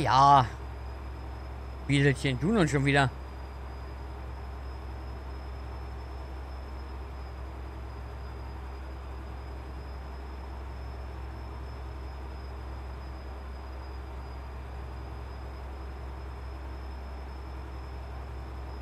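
A truck engine hums in a low, steady drone.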